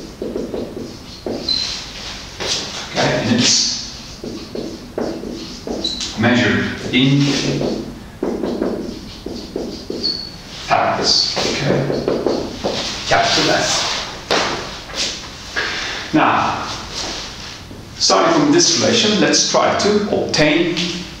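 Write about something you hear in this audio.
A man lectures steadily, close by.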